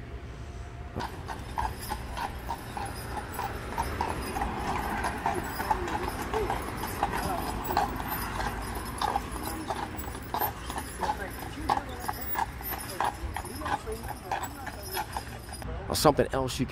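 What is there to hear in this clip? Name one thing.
Horse hooves clop steadily on pavement.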